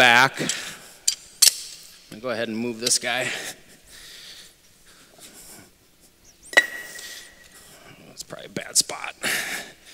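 A concrete block scrapes and knocks against other blocks.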